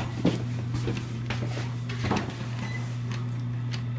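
A button clicks as it is pressed.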